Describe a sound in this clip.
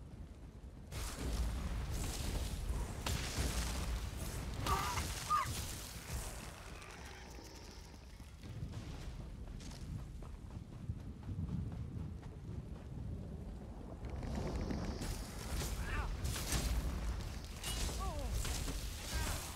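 Spells crackle and blast during a game fight.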